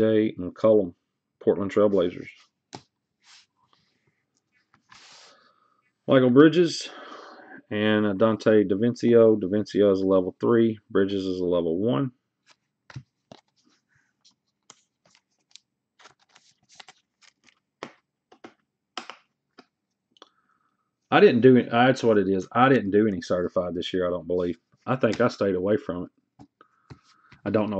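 Trading cards rustle and slide softly between hands.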